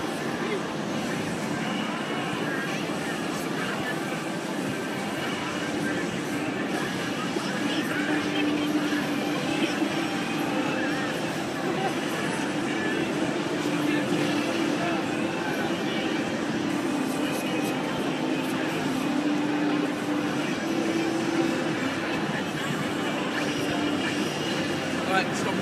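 Fighting game sound effects play loudly from a television.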